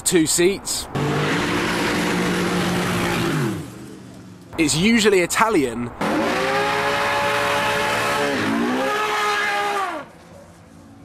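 A sports car engine roars and revs hard.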